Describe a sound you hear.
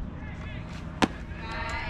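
A ball smacks into a catcher's mitt.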